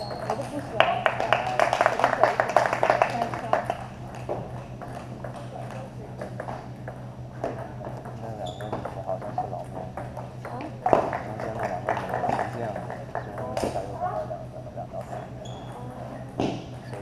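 A ping-pong ball clicks back and forth between paddles and table in quick rallies.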